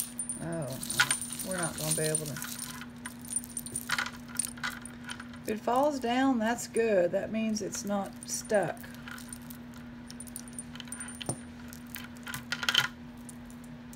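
Metal jewelry clinks and rattles as hands sort through a pile.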